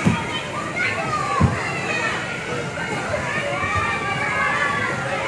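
Plastic balls rustle and clatter as children wade through them.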